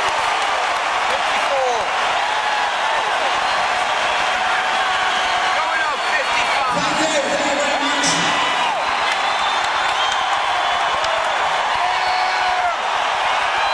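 A large crowd cheers loudly in a big echoing hall.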